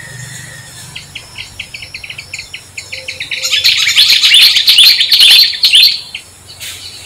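A baby monkey squeals and screams shrilly, growing louder and then stopping.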